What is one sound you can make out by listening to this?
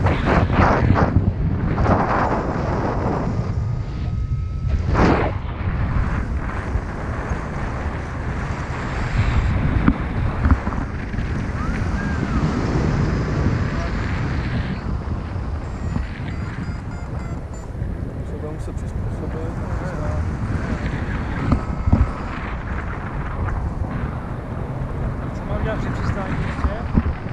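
Strong wind rushes and buffets loudly throughout.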